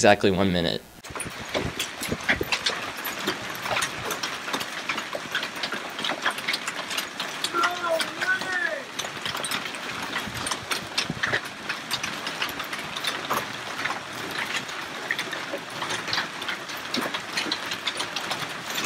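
Hail pounds down hard on the ground and a pool, with dense rattling clatter.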